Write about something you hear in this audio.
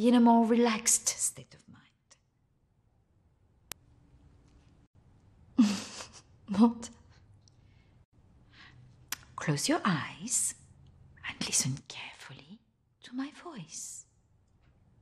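A middle-aged woman speaks quietly and intently, close by.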